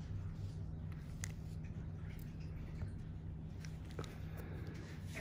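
Rubber gloves rustle and squeak faintly against skin.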